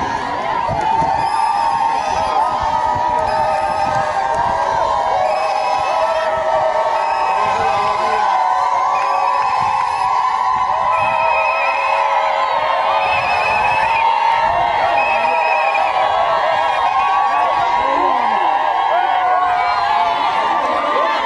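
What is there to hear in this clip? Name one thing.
A large crowd sings and cheers loudly outdoors.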